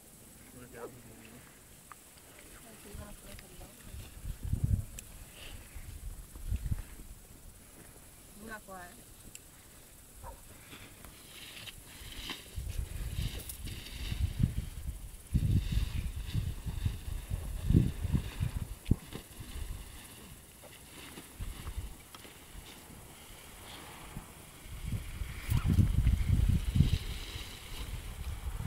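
Wind gusts rumble against the microphone outdoors.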